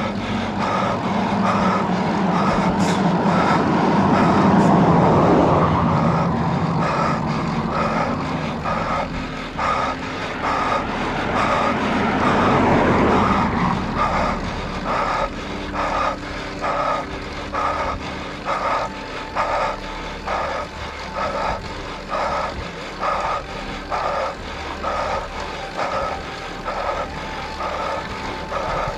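Wind rushes past a cyclist descending on a road bike.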